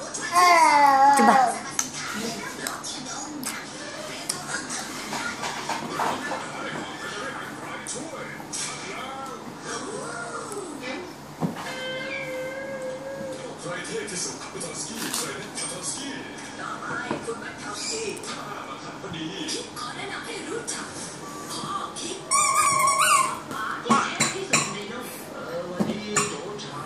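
A toddler squeals and babbles loudly close by.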